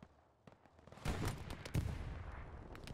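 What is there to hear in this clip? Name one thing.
A gun fires a loud shot.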